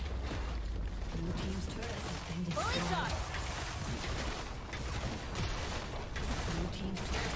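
Video game spells and attacks crackle and blast in a busy fight.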